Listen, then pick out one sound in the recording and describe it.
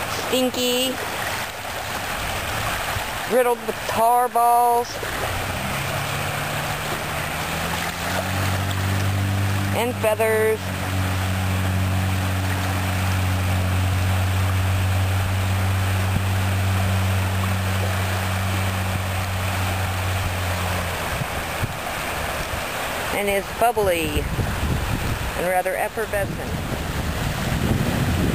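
Small waves lap and wash gently onto a sandy shore.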